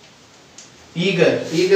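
A man speaks loudly and clearly nearby.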